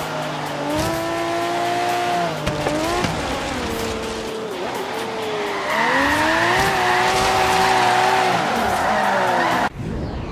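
A sports car engine roars, its pitch rising and falling as gears shift.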